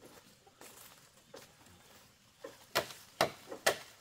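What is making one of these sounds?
A long bamboo pole scrapes and knocks along the ground as it is dragged.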